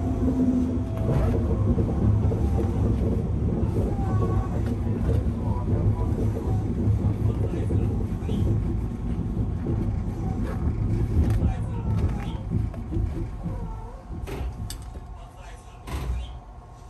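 A train rumbles along the tracks and slows down.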